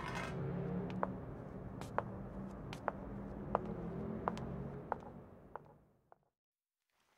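High heels click on cobblestones at a slow, even pace and fade into the distance.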